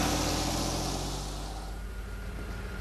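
A car drives along a street with a rushing traffic noise.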